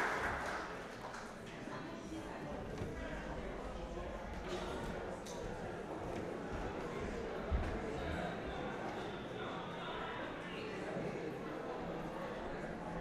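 Many people chatter and murmur in a large, echoing hall.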